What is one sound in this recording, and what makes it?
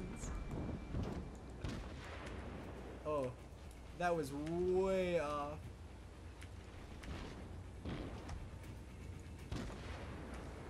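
Heavy naval guns boom and shells burst over open water.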